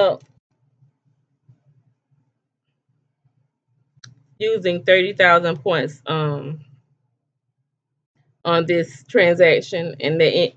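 A middle-aged woman speaks calmly close to a microphone, in short bursts with pauses.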